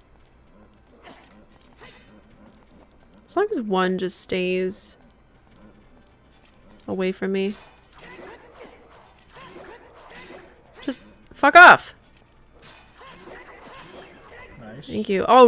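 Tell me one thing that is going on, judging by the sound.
A sword swishes and clangs in a fight.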